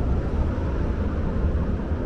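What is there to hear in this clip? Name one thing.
A car drives by on the road.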